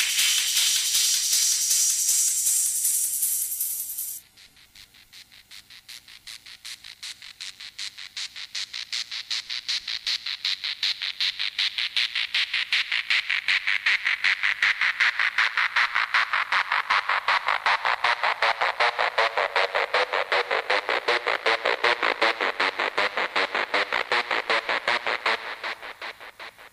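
Electronic dance music plays loudly from turntables, with a fast steady beat.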